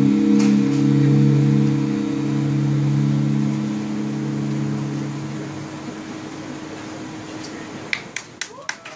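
An electronic keyboard holds a low droning chord that slowly fades.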